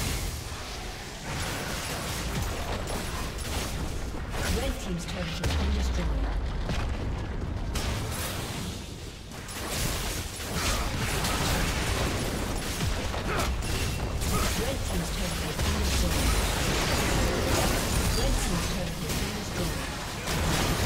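Magic spells whoosh and crackle during a fantasy battle.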